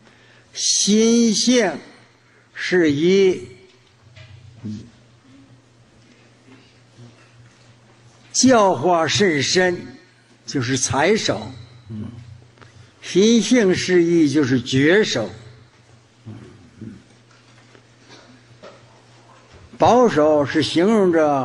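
An elderly man speaks slowly and calmly into a microphone, in bursts with long pauses.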